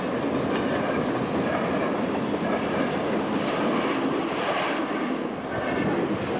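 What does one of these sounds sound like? A train rumbles and clatters past at close range.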